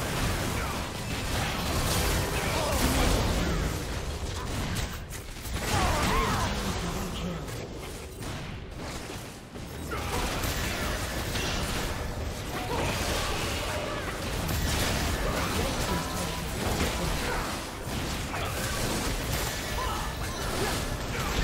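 Spell effects blast and crackle in a fast game battle.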